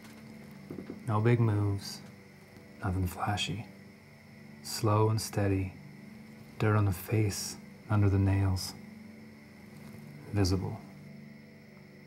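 A man speaks slowly and quietly in a low, gravelly voice close by.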